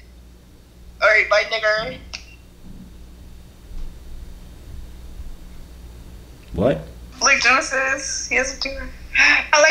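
A young man speaks casually into a microphone close by.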